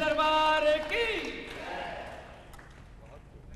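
A man sings loudly through a microphone, holding long notes that then fade.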